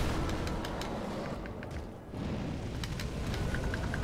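Blades clash with sharp metallic clangs.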